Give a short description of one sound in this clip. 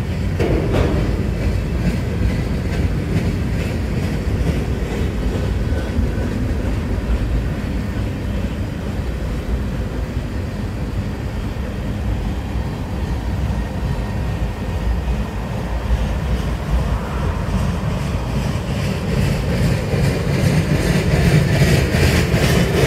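A long freight train rumbles past with wheels clattering over the rails.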